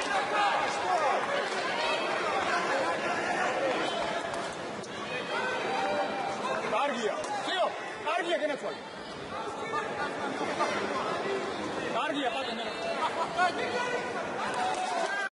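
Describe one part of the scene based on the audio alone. A crowd murmurs and shouts in a large echoing arena.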